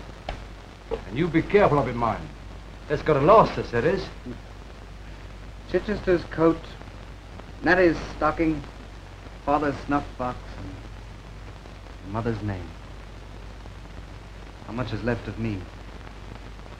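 An older man answers in a gruff voice.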